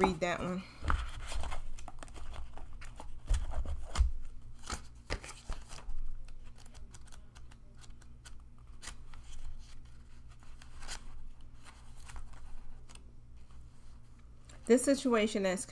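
Cards rustle and flick as they are shuffled.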